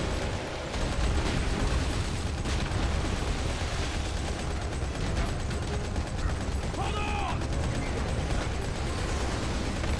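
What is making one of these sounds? A mounted heavy machine gun fires in rapid bursts.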